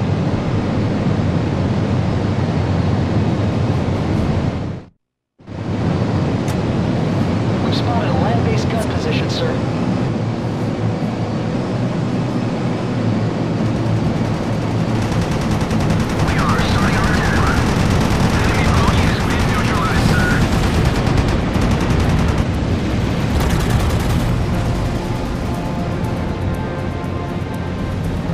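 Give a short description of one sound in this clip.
Propeller aircraft engines drone steadily.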